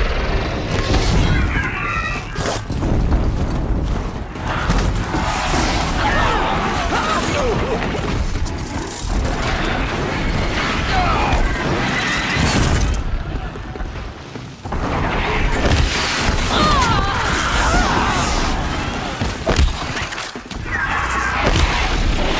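Machines screech and roar in combat.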